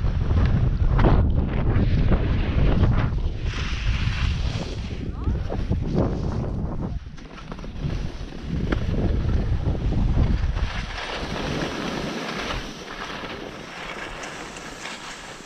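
Skis scrape and hiss slowly over packed snow.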